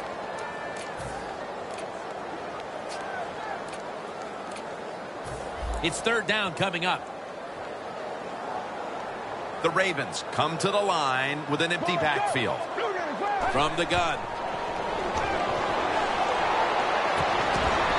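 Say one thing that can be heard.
A large crowd murmurs and roars in a stadium.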